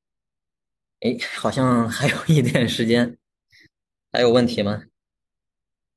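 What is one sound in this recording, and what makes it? A young man speaks calmly into a microphone over an online call.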